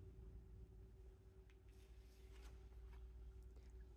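A playing card slides off a cloth-covered table.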